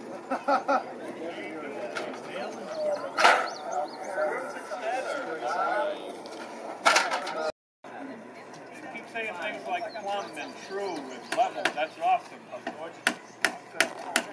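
Several men talk nearby, outdoors.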